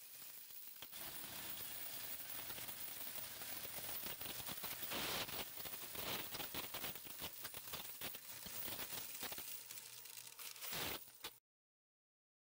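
A coin counting machine whirs steadily.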